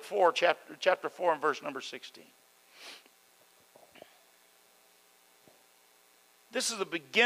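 An elderly man speaks calmly into a microphone over loudspeakers, pausing between phrases.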